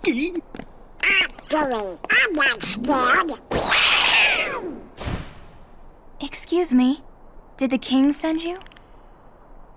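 A cartoon duck character squawks in a raspy, excited voice.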